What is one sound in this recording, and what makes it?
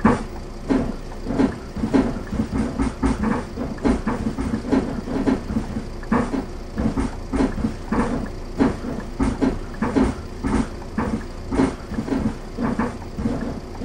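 Footsteps thump on a bus floor as passengers climb aboard.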